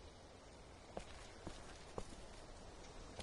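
Footsteps tread slowly on pavement.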